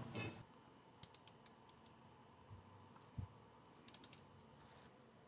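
A ratchet wrench clicks in short bursts.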